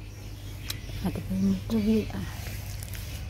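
A baby monkey squeaks a few times close by.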